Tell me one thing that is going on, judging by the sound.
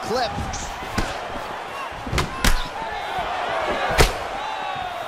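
Punches and kicks land with sharp, heavy thuds.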